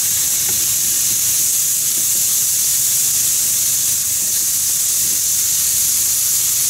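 Chopsticks tap and scrape against a frying pan.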